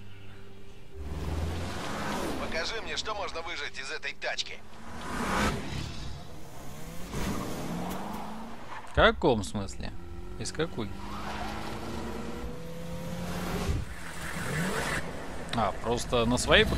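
Car engines roar and rev as cars race along a dirt road.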